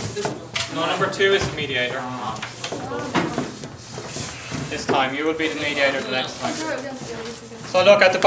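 Paper rustles in a man's hand.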